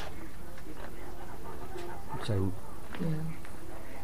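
Two women chat quietly nearby.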